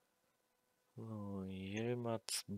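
A young man speaks close into a microphone, drawing out his words.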